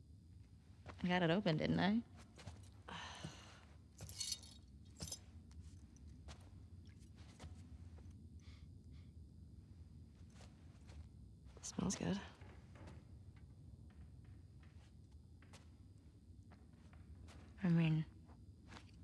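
A second young woman answers calmly, close by.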